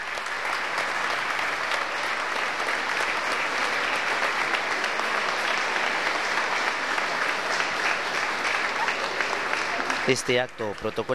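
A crowd applauds steadily in a large echoing hall.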